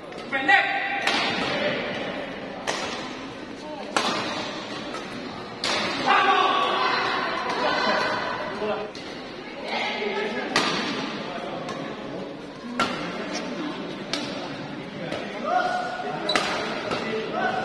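Shuttlecocks are struck with sharp cracks of rackets in a large echoing hall.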